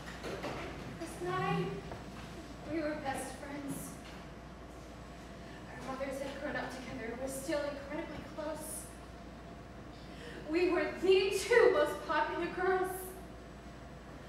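A young woman speaks slowly and calmly, with pauses.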